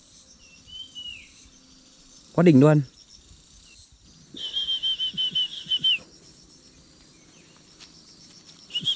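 Nestling birds give high, shrill calls in short bursts.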